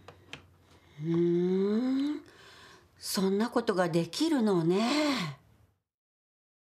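A middle-aged woman speaks calmly, close by.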